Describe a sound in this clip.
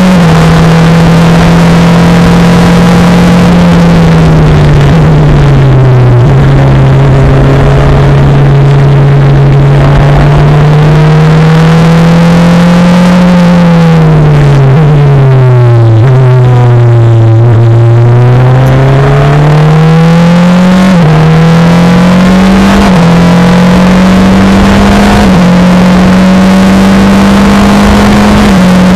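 The four-cylinder engine of a Formula Renault race car screams from the cockpit, its revs rising and falling through gear changes.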